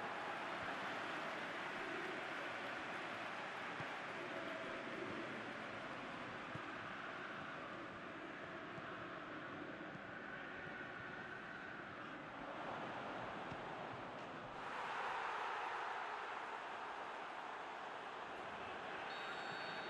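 A large stadium crowd roars steadily and swells louder near the end.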